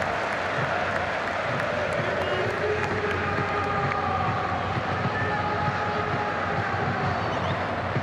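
A large stadium crowd roars, with the noise ringing out in the open air.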